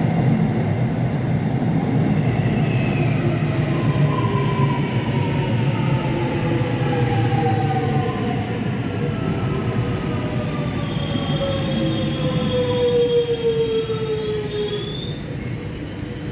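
A train rumbles into an echoing underground station and slows to a stop.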